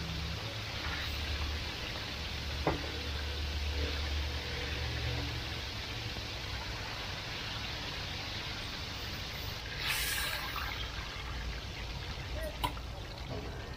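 Metal tongs clink against a steel fryer.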